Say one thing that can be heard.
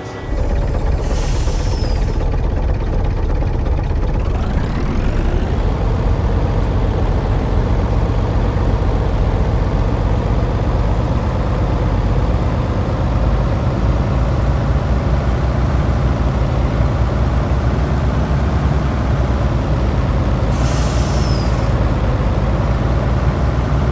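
A heavy truck engine rumbles, then revs up as the truck pulls away.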